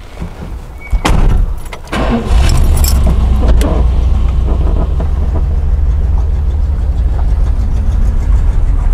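A large car engine starts and rumbles steadily.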